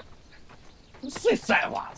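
A man shouts loudly outdoors.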